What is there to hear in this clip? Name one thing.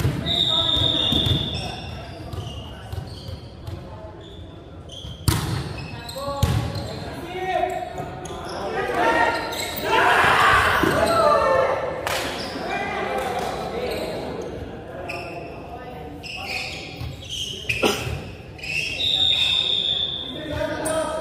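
Sneakers squeak on the wooden floor.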